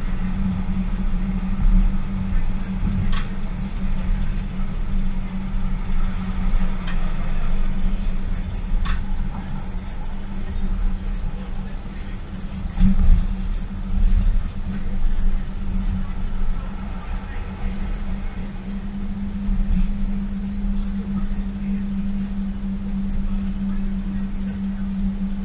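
A train rumbles steadily along the rails with a low engine hum.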